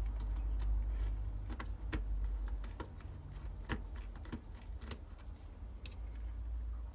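Small plastic parts and wires click and tap as they are handled.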